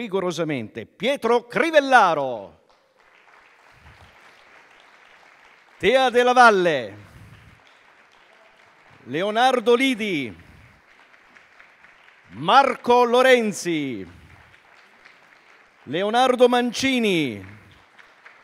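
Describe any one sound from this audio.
A man calls out loudly over a loudspeaker in a large echoing hall, in short bursts with pauses between.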